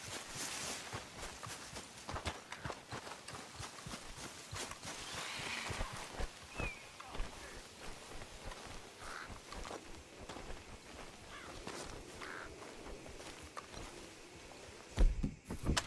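Footsteps crunch through grass and dry leaves.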